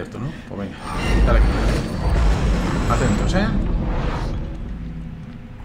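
A heavy stone door rumbles open.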